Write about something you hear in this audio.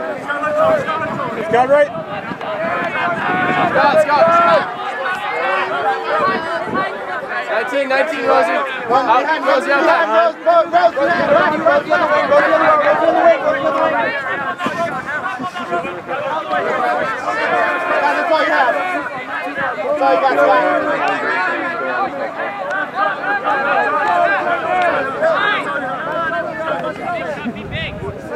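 Spectators nearby talk with animation.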